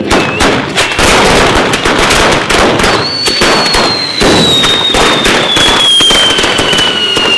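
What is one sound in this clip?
Firecrackers bang and crackle rapidly.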